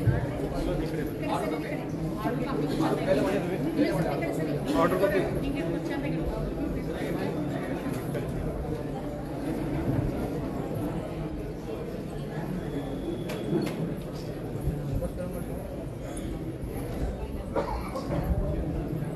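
A crowd of people chatter in a room nearby.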